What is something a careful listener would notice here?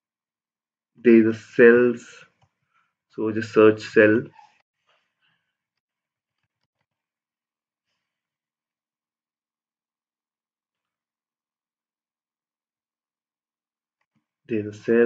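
A young man speaks calmly into a nearby microphone, in short bursts with long pauses.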